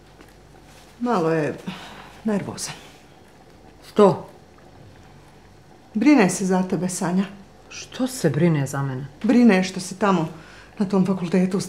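A middle-aged woman answers in a calm, worried voice.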